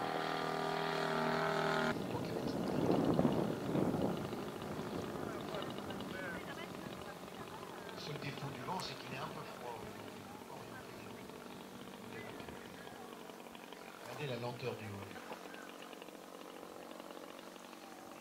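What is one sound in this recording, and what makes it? A small propeller plane's engine drones overhead and slowly fades.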